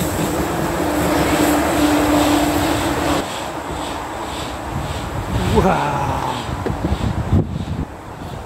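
A steam locomotive hisses steam nearby.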